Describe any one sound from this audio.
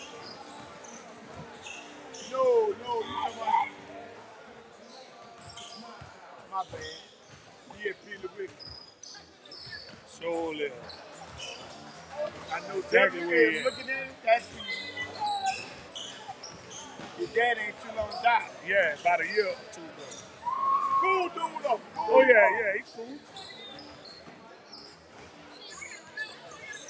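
Basketballs bounce on a hardwood floor in a large echoing gym.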